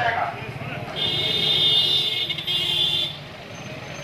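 A vehicle horn honks.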